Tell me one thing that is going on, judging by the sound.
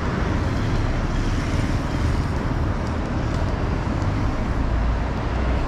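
A bus engine idles with a low rumble close by.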